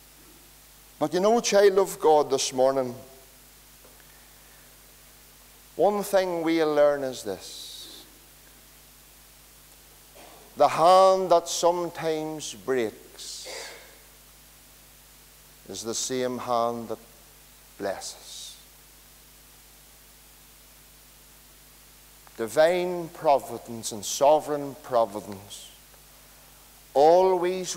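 A middle-aged man speaks with feeling through a microphone, in bursts with long pauses, in a reverberant hall.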